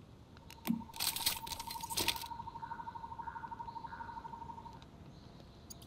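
A game chime rings as an item is crafted.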